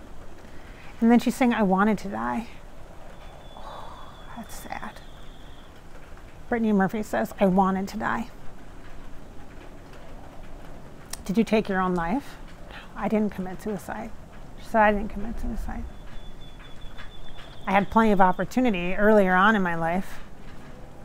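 A woman speaks calmly and close to a clip-on microphone, in short phrases with pauses.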